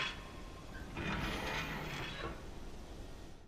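A heavy metal safe door swings open.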